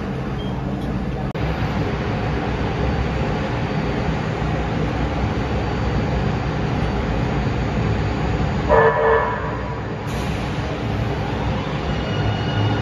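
A train's engine hums and rumbles steadily at a platform.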